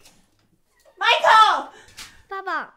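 A woman cries out in distress nearby.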